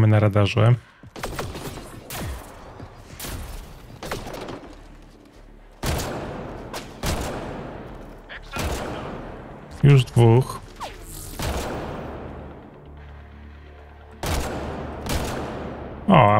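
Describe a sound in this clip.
Rifle shots ring out one after another, each followed by a long echo.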